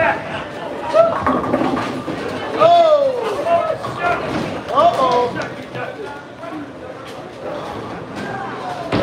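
Men shout and cheer loudly in a large echoing hall.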